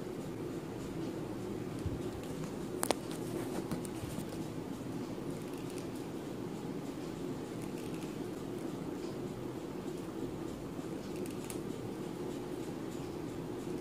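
A twisted thread rasps softly against skin as it plucks hairs.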